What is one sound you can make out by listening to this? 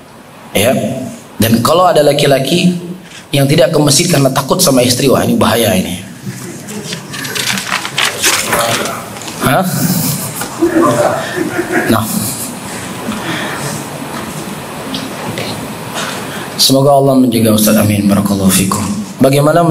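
A man speaks steadily into a microphone, heard through a loudspeaker in an echoing hall.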